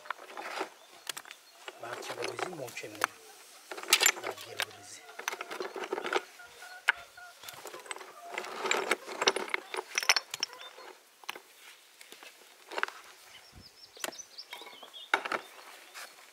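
Metal tools scrape and knock against dry soil and stones.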